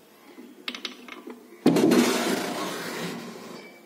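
A key turns and clicks in a lock.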